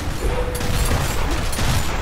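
An automatic rifle fires a burst of shots.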